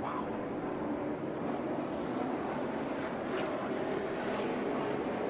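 Race car engines roar loudly around a track.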